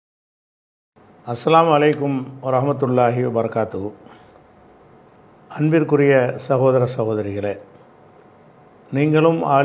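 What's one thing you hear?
An elderly man speaks calmly and firmly into a microphone.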